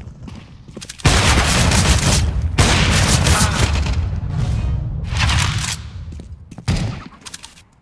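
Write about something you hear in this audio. A rifle fires loud, echoing shots.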